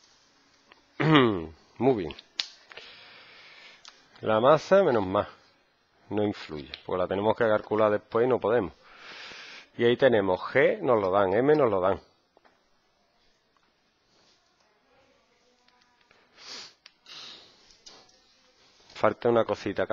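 A man explains calmly, close by.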